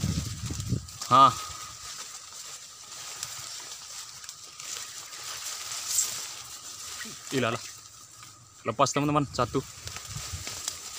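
A young man calls out outdoors.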